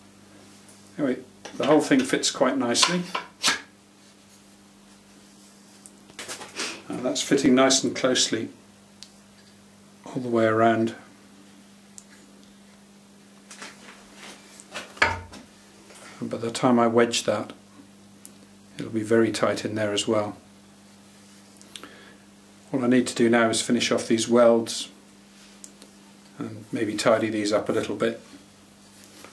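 A man speaks calmly close by, in short bursts with pauses.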